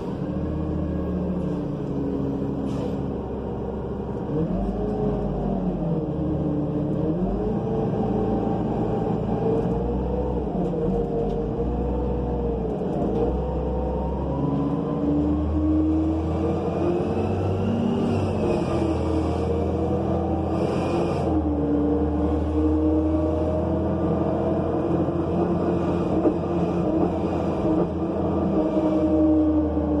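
A bus engine hums and whines as the bus drives along.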